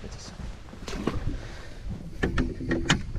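A hatch lid knocks shut.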